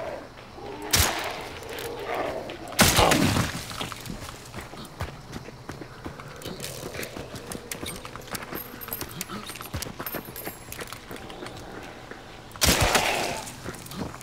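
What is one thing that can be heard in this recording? A revolver fires loud, sharp shots that echo outdoors.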